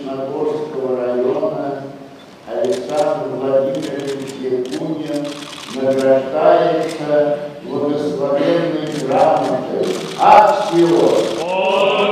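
An elderly man chants in a large echoing hall.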